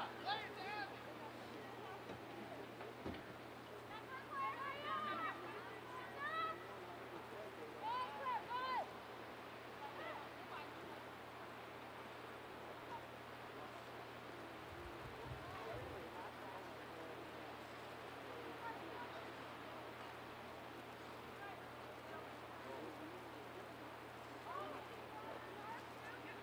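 Young women call out and shout to each other across an open field, some distance away.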